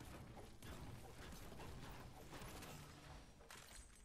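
Video game gunshots crack in quick bursts.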